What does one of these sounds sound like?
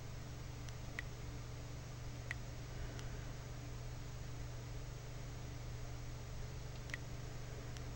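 Short, bright menu blips sound now and then.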